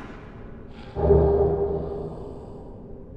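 A heavy wooden chest creaks open.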